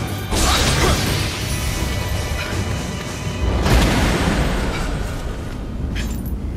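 Swords clash with loud bursts and booms.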